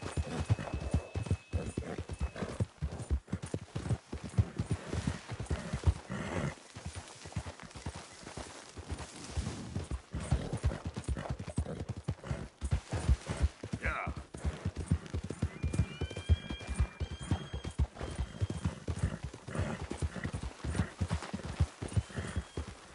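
A horse's hooves thud steadily on grass and stony ground.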